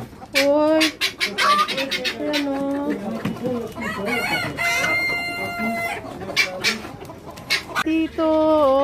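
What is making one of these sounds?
Hens cluck and squawk.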